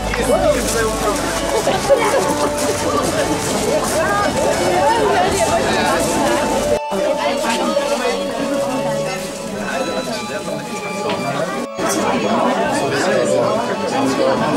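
A crowd of adults and children chatter close by.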